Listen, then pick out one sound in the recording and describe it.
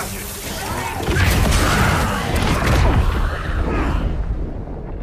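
A heavy blast booms and rumbles.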